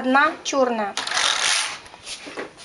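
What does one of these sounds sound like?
A knitting machine carriage slides with a rasping whir across its needle bed.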